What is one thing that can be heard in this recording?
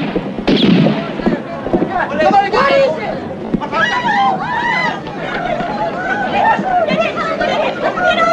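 A crowd of men and women shout and scream in panic outdoors.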